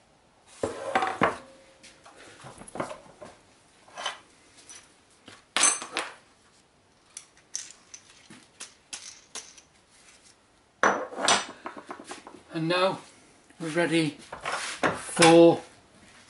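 Metal tools clank and scrape against a workbench and vise.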